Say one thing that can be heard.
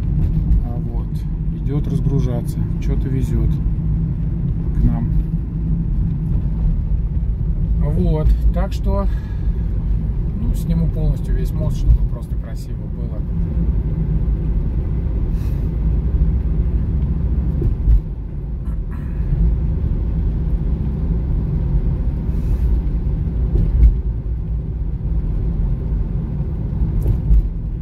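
A car engine and tyres rumble steadily on the road from inside the car.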